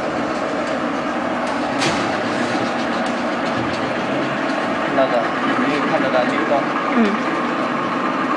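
A machine hums steadily close by.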